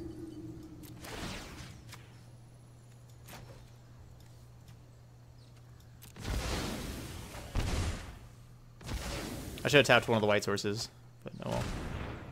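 Magical whooshing and chiming game sound effects play in bursts.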